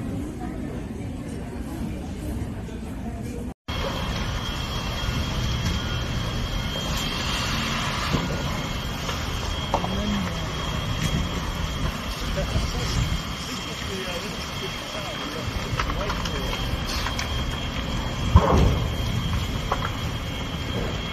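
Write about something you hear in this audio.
A large fire roars and crackles outdoors.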